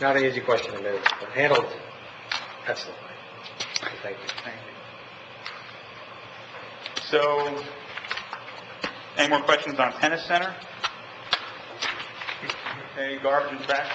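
A man speaks calmly into a microphone in a large room, with pauses.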